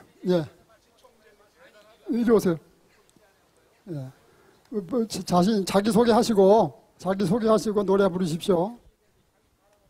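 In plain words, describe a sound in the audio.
An elderly man speaks slowly and loudly through a microphone, in bursts with pauses.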